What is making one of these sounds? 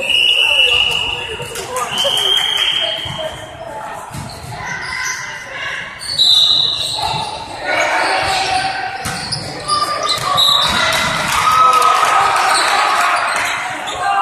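A volleyball is struck with dull slaps.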